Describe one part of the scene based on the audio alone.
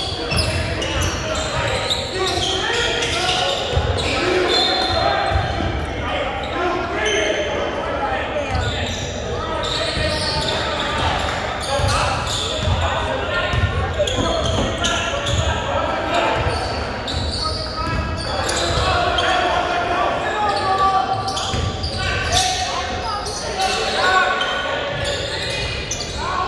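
A basketball bounces on a hard court in a large echoing gym.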